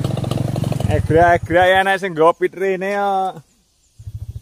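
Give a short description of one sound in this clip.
A motorbike engine revs loudly nearby.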